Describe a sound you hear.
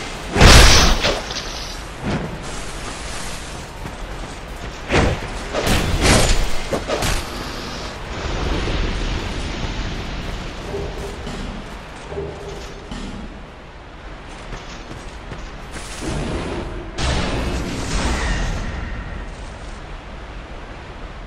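Footsteps crunch over grass and dirt.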